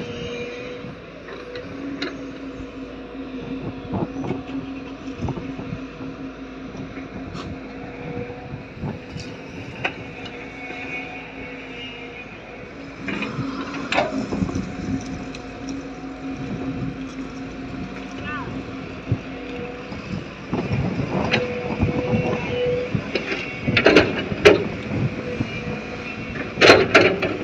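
Metal clanks and knocks as an excavator works.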